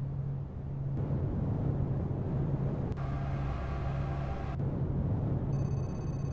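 A spaceship's engines roar as it jumps to warp.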